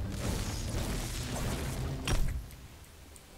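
A pickaxe strikes a wall with a sharp thud.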